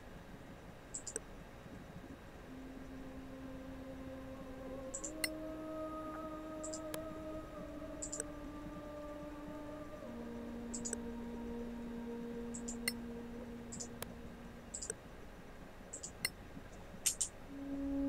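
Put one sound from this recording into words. Soft clicks sound as menu options are selected.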